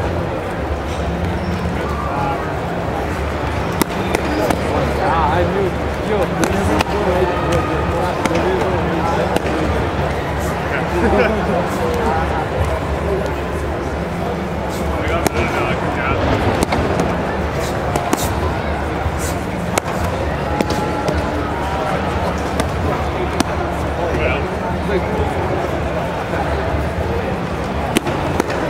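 Bare feet thud and shuffle on mats.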